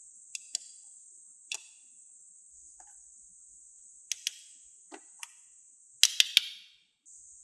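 A small plastic toy hammer taps lightly on hard plastic.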